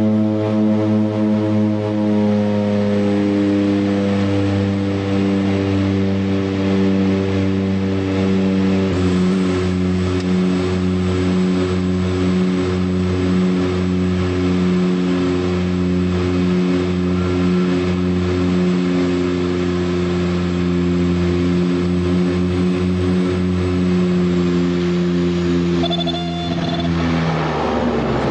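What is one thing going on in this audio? A small plane's propeller engine drones steadily and loudly, close by.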